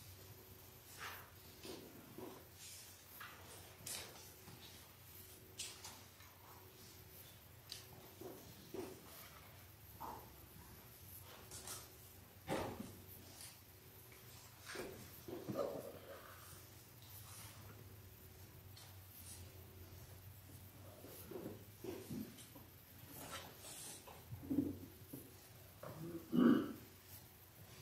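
A man speaks quietly and slowly from a distance in an echoing room.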